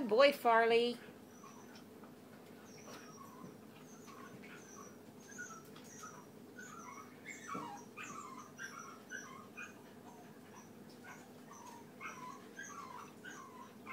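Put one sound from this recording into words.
Puppies chew and crunch food from metal bowls.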